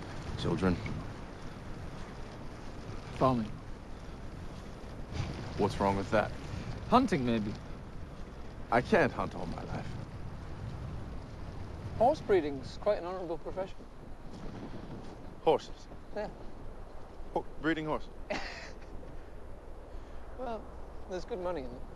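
A second young man answers calmly close by.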